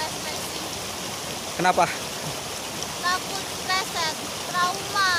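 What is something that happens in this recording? A stream babbles and rushes over rocks outdoors.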